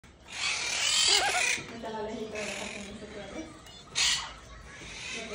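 Parrots squawk and chatter with voice-like calls close by.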